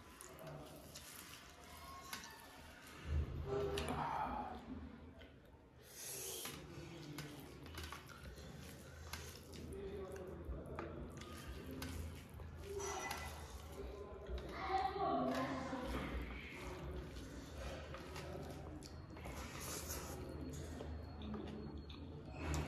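A young man chews food with his mouth open.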